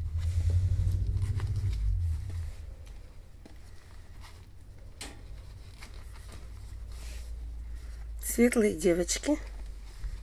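Fabric rustles as puppies are handled.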